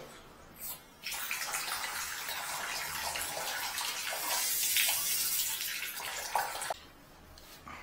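Water hisses steadily as it sprays from a pipe, then stops.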